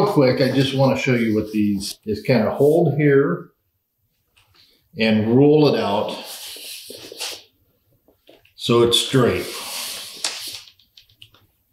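A middle-aged man speaks calmly and clearly close by.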